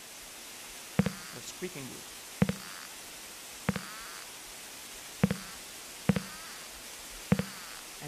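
Wooden boards knock and creak at a steady pace.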